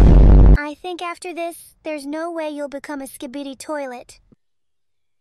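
A young girl talks cheerfully.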